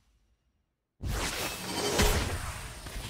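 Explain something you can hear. A magical spell whooshes with a burst of energy.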